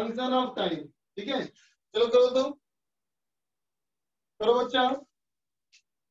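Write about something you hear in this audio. A man speaks calmly into a close microphone in short phrases.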